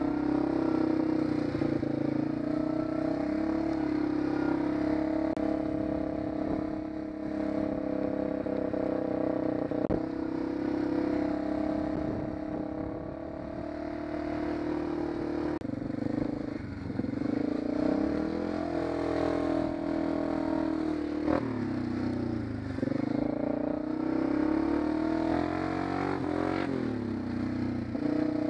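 A quad bike engine drones close by, revving up and down.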